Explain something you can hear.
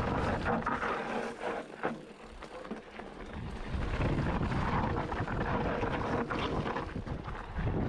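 Bicycle tyres roll and crunch over a rough dirt trail.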